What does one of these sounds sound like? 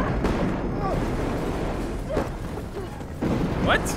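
Metal crashes and debris clatters in an explosion.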